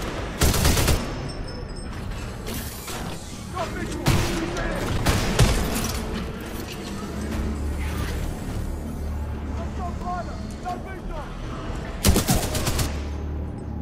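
Gunfire rattles in short, loud bursts.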